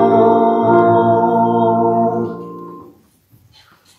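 A congregation sings a final note together in an echoing hall, then falls silent.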